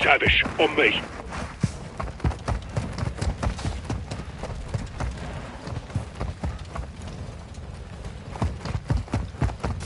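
Heavy footsteps thud quickly over rough ground.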